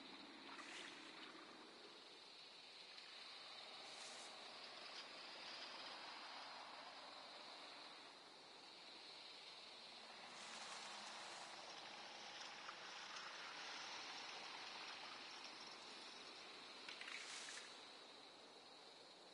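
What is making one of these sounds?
A soft wind blows steadily through grass.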